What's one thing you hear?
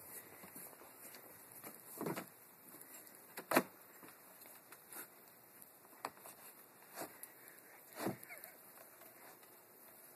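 Snowboard bindings click and rattle as a boy straps them.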